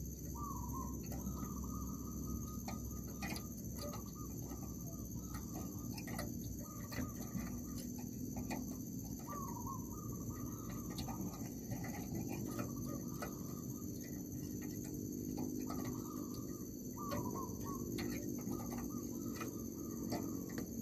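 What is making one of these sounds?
Small birds chirp and call repeatedly close by.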